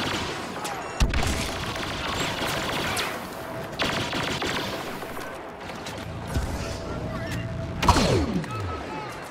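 Explosions boom nearby.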